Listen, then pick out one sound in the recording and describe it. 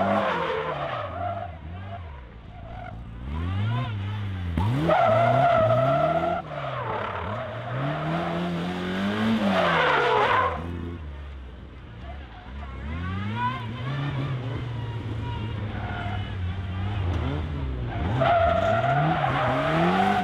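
A small race car engine revs up and down over and over, close by.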